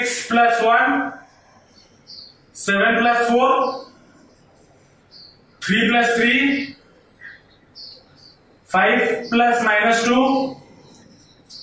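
A young man speaks clearly in short phrases, as if explaining, nearby.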